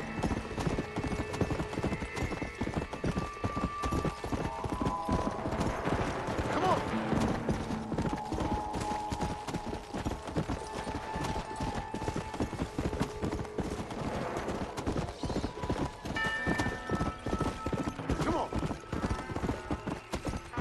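Horse hooves thud in a quick, steady gallop on a dirt trail.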